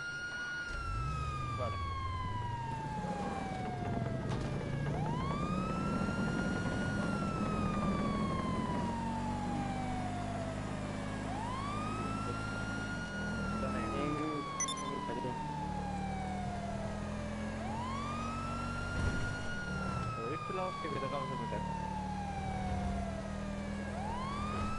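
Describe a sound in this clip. A car engine revs and hums as it drives.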